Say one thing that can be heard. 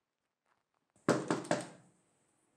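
Bedding rustles and flaps as it is shaken out.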